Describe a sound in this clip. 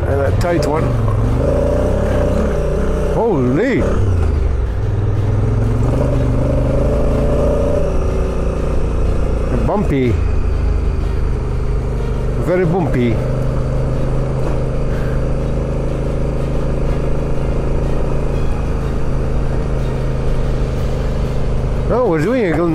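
A motorcycle engine hums steadily and briefly revs up and down now and then.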